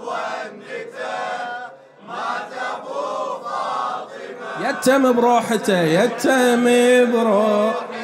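A man chants loudly into a microphone in a mournful, melodic voice.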